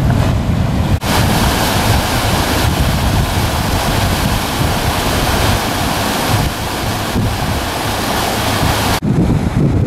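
Water churns and rushes in a boat's wake.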